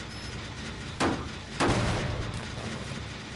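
A metal machine is struck with a loud, clanking bang.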